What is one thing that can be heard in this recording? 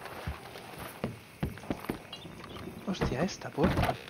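Boots thud on wooden steps and boards.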